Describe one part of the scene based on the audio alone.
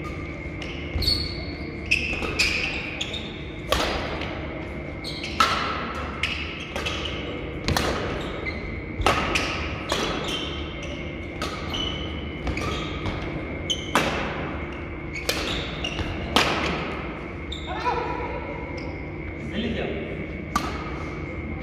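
Badminton rackets strike a shuttlecock with sharp pops, echoing in a large hall.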